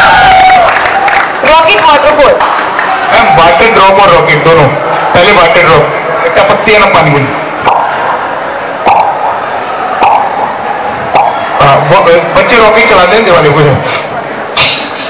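A young man sings loudly into a microphone through loudspeakers.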